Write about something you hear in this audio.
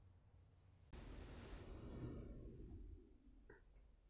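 A woman breathes out slowly and deeply.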